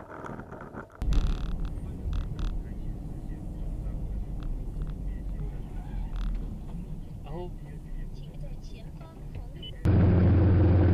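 Tyres rumble on a road as a car drives along.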